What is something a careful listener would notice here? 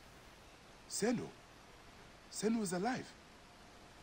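A man speaks with surprise, close by.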